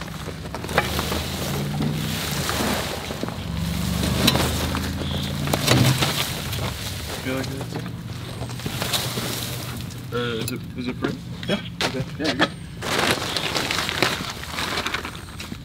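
Branches rustle and snap as a shrub is pulled out by hand.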